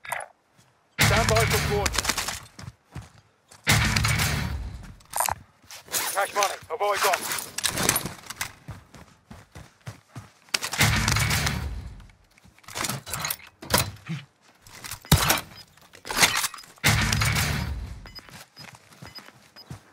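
Gear rattles and clicks as supplies are picked up.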